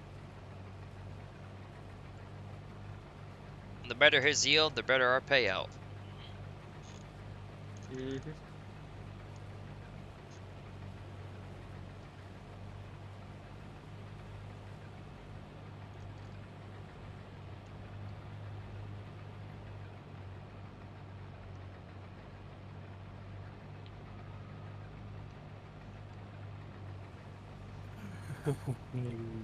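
A combine harvester engine hums steadily from inside the cab.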